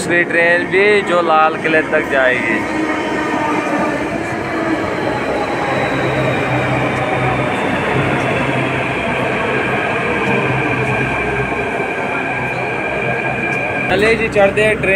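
A train rumbles into the station and rolls past close by.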